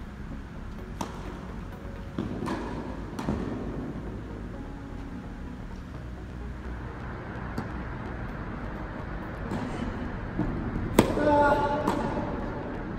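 A tennis ball pops off racquets in a large echoing hall.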